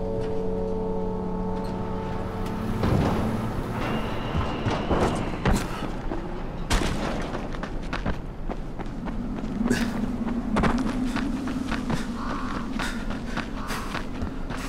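Footsteps run and thud across metal roofing and hard ground.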